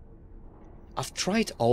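A young man speaks loudly close to a microphone.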